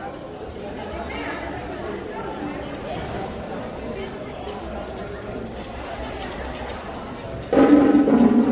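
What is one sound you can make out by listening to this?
A crowd murmurs in a large, echoing covered court.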